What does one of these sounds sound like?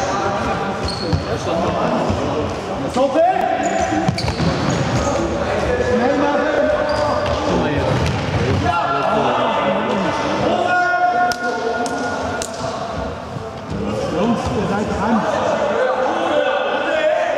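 Young men shout and call out across a large echoing hall.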